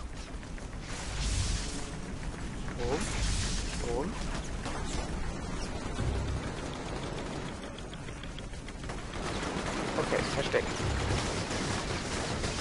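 Explosions boom with deep thuds.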